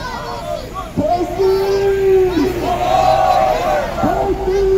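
A truck horn blares in long blasts close by.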